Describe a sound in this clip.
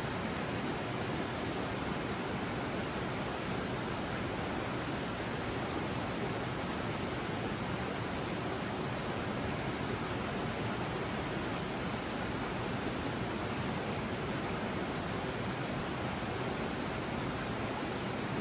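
A shallow stream babbles steadily.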